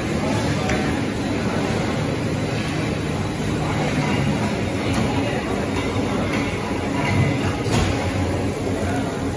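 A conveyor machine hums steadily.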